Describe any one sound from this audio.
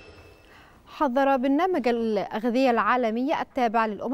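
A young woman speaks clearly and calmly into a microphone.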